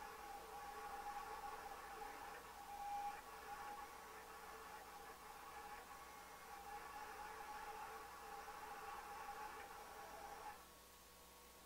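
A cutting plotter whirs steadily as its head moves back and forth.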